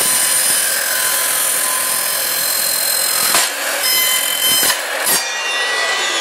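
A power saw screams as it cuts through metal.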